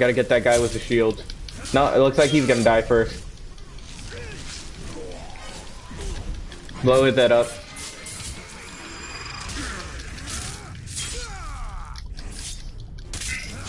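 Blades slash and clang against armour in a fight.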